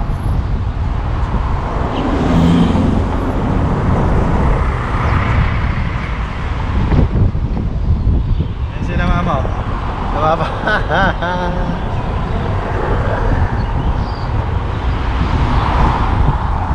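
Cars pass by on a busy road.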